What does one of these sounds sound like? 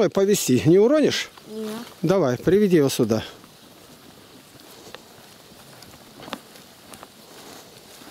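Hooves and footsteps shuffle on a dirt path.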